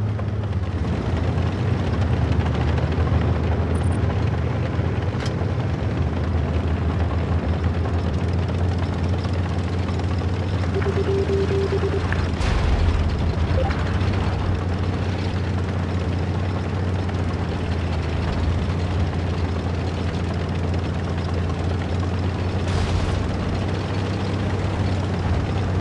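A tank engine rumbles steadily as it drives.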